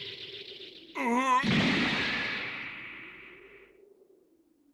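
A blast explodes with a deep boom and a fading rumble.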